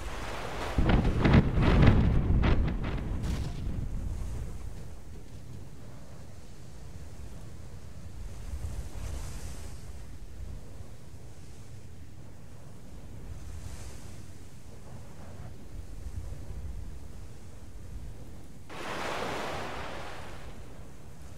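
Water splashes and churns around a wooden ship as it turns.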